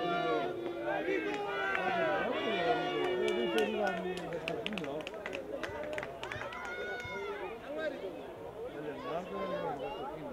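Several young players and spectators shout and call out across an open field.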